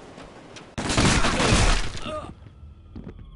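A grenade explodes with a loud bang.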